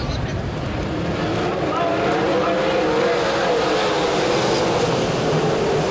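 A winged sprint car races past on a dirt track.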